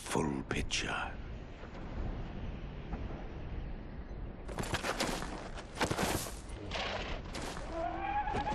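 Wind howls over open ground.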